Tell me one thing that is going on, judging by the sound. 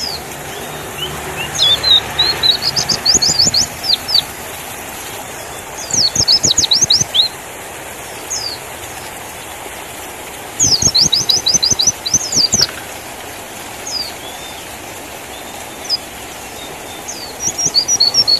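A small bird sings close by in quick bursts of high, sweeping chirps.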